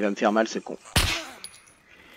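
A pistol fires a single loud shot.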